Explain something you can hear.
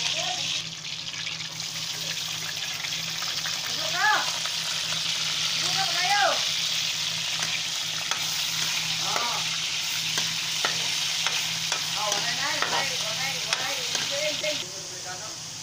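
Meat sizzles loudly in hot oil.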